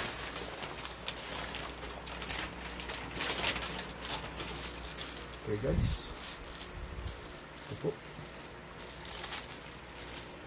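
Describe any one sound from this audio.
Plastic wrap crackles softly as it is handled.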